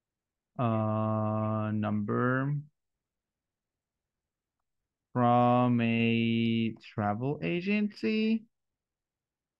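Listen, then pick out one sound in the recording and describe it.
A man speaks slowly and clearly through an online call.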